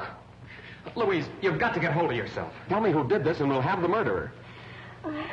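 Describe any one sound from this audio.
A young woman sobs and cries out in distress, heard through an old film soundtrack.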